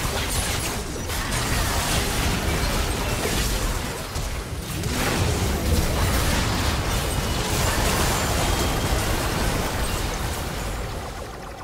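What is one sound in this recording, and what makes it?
Spell effects and weapon hits crash and clash in a fast, busy fight.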